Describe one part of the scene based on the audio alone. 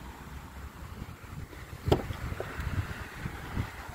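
A car door latch clicks open.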